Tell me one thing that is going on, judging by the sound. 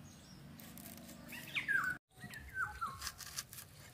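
A knife slices through an onion.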